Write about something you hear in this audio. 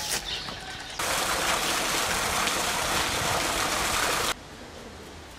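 A fountain jet splashes steadily into water.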